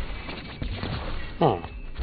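An explosion bursts with a crunchy blast.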